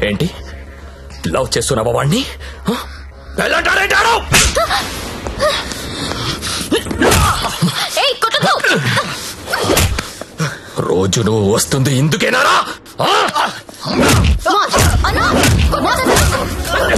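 A man shouts angrily close by.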